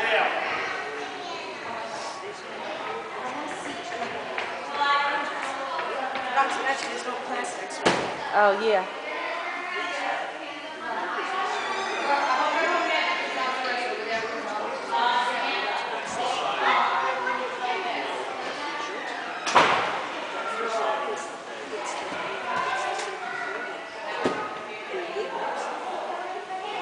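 A man speaks calmly nearby in a large echoing hall.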